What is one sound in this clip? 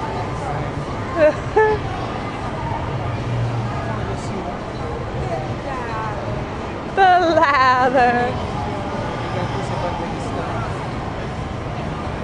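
A crowd murmurs in the background.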